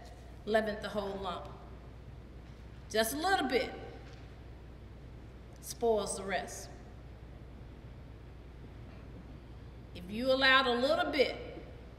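A middle-aged woman speaks slowly and expressively in short phrases, in a room with a slight echo.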